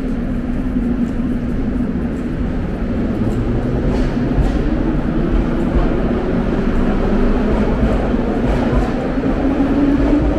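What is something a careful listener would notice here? Footsteps echo in a large underground hall.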